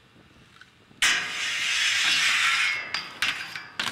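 A skateboard grinds loudly down a metal handrail.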